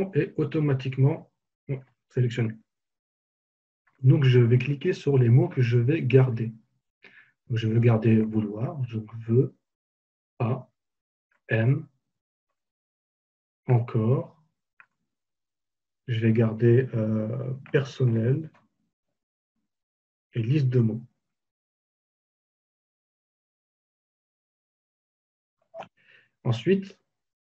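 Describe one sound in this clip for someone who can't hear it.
A man talks calmly into a microphone, in short phrases with pauses.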